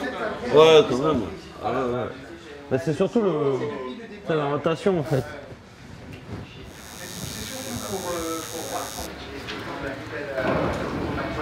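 Men talk and laugh nearby with animation.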